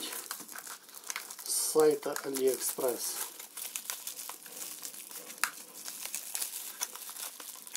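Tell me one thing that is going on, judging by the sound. Plastic bubble wrap crinkles and rustles in hands.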